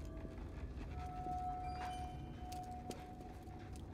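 Footsteps shuffle slowly through a dark passage.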